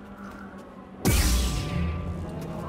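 A lightsaber ignites with a sharp crackling snap.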